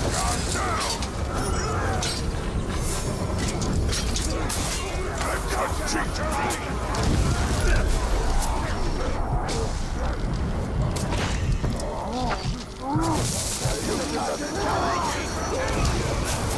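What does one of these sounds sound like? Monsters growl and roar.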